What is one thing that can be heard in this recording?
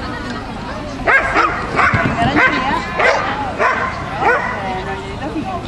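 A woman calls out loudly to a dog.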